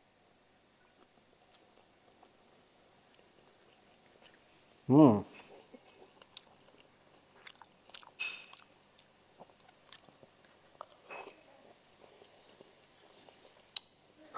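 A man slurps and chews food noisily.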